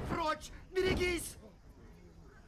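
A man exclaims loudly in a deep voice.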